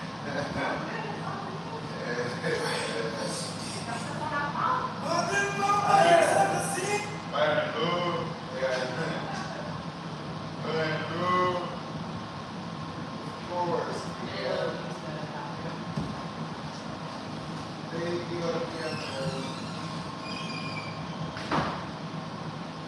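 A woman talks a short way off in a large, echoing room.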